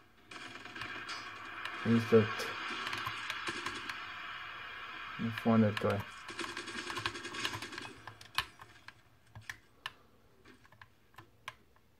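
Controller buttons click and thumbsticks tap under quick presses.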